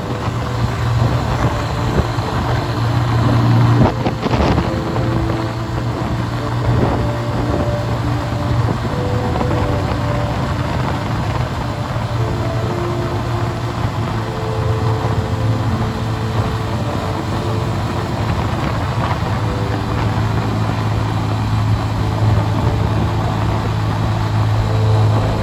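Wind rushes and buffets past.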